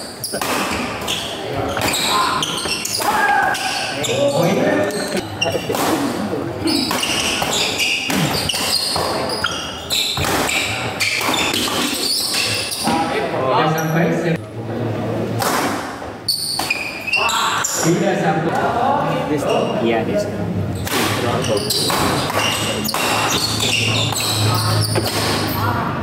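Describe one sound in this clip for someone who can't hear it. Shoes squeak and thud on a wooden court.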